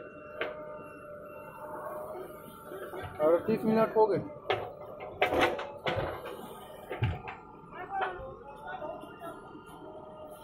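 A backhoe engine rumbles steadily nearby.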